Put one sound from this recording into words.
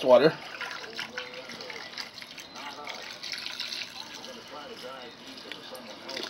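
Water pours in a thin stream into a container.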